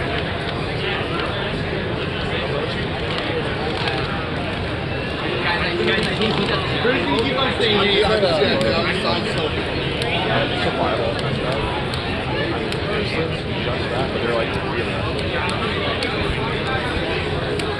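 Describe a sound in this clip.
A crowd chatters steadily in a large, busy hall.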